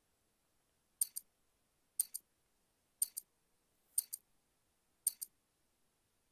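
A countdown timer beeps in short double pips, once a second.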